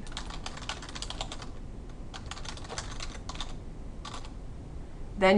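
Keys clack quickly on a keyboard.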